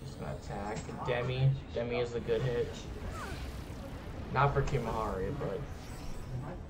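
A magic spell bursts with a deep rumbling whoosh.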